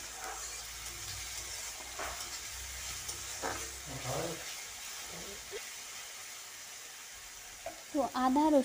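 Food sizzles softly in hot oil.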